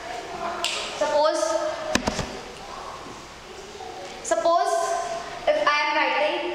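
A young woman speaks clearly and steadily, as if teaching.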